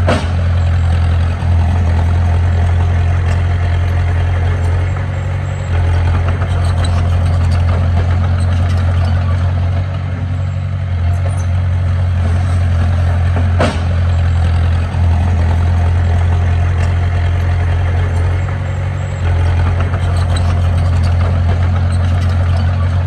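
A bulldozer blade pushes and scrapes dirt.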